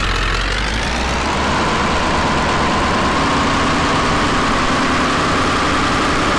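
A pickup truck engine revs up and holds a steady drone.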